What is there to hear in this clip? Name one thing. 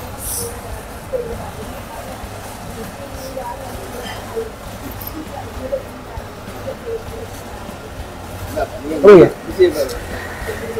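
Young men talk and laugh casually close by.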